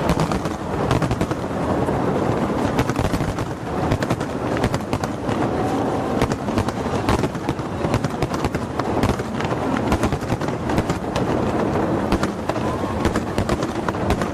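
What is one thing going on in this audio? Fireworks boom with deep rumbling thuds.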